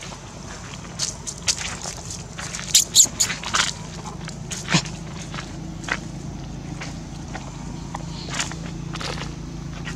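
A baby monkey squeals in short, shrill cries.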